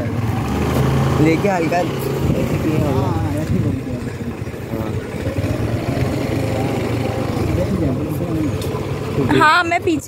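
A vehicle rumbles steadily along a street.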